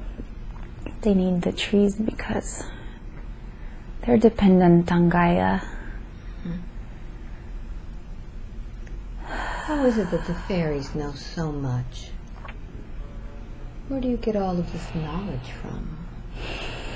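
A young woman moans drowsily in short bursts close by.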